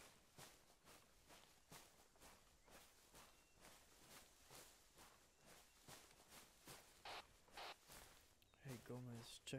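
Footsteps crunch through dry leaves and undergrowth at a steady walking pace.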